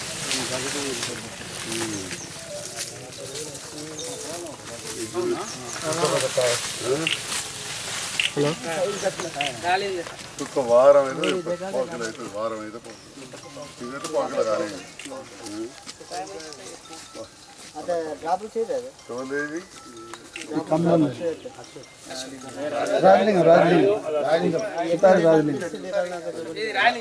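Several men talk outdoors at close range.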